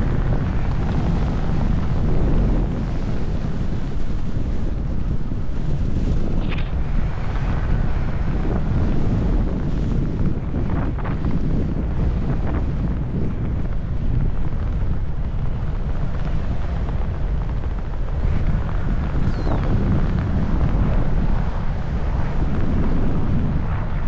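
Strong wind roars and buffets against the microphone throughout.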